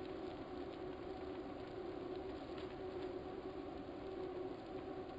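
A stationary bike trainer whirs steadily.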